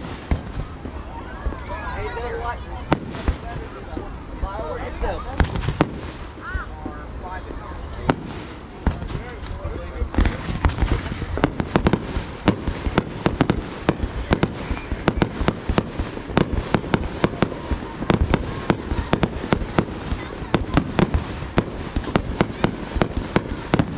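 Fireworks rockets whoosh upward.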